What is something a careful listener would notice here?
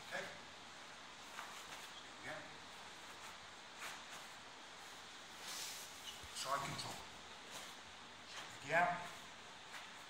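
Fabric rustles as two men grip and pull at each other's clothing.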